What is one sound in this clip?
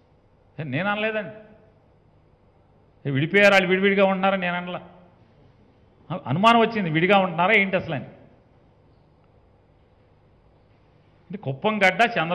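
A middle-aged man speaks firmly into a microphone in short bursts with pauses.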